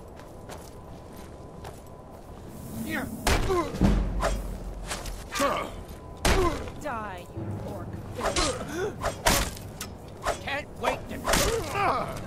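A mace strikes a wooden shield with heavy thuds.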